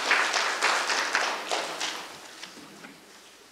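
A crowd applauds in an echoing hall, then the clapping fades.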